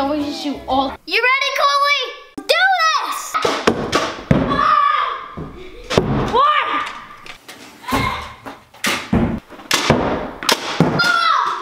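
A toy launcher pops as it fires a ball.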